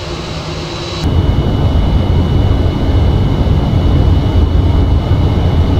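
A low cabin rumble drones steadily.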